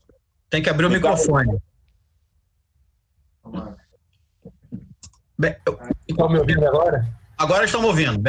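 A man speaks in short bursts over an online call.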